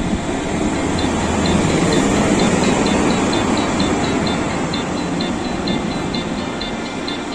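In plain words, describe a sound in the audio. Train wheels clack over rail joints in a quick rhythm.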